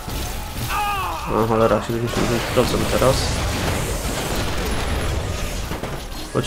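Heavy gunfire rattles steadily.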